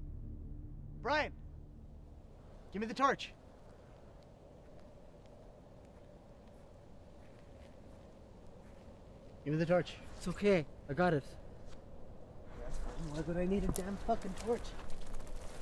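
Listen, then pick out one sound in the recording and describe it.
A man calls out nearby in short, tense bursts.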